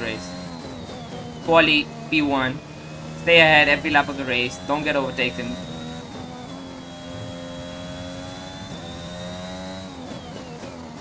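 A racing car engine whines at high revs, shifting pitch with gear changes.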